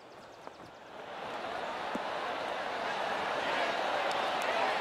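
A crowd cheers as a golf ball lands near the hole.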